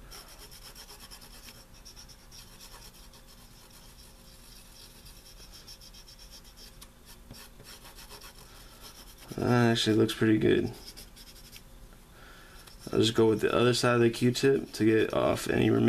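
Something small scrapes and rubs lightly against a circuit board's metal contacts.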